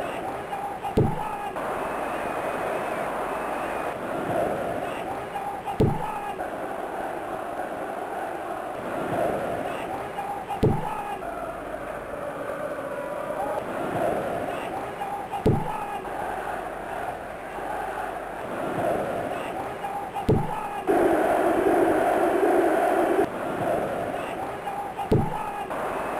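A football is kicked with a dull thump, several times at even intervals.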